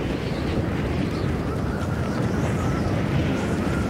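A cartoonish bomb bursts with a loud pop.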